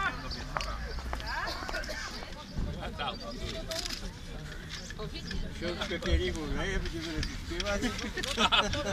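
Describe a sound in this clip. Several men and women talk casually nearby outdoors.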